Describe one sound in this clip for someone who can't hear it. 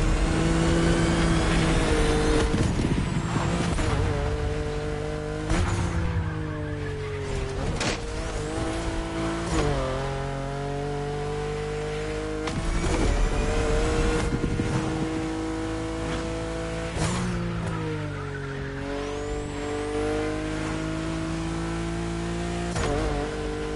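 A powerful car engine roars and revs up and down through gear changes.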